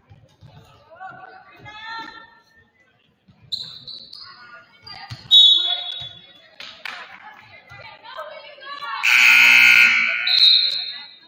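Young women shout and call out across an echoing gym.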